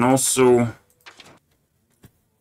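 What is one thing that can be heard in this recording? A page flips with a quick papery swish.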